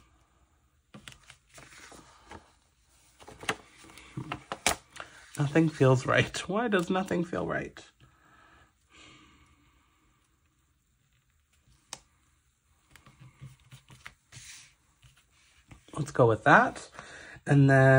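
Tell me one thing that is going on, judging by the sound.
Paper rustles and crinkles as sheets are handled.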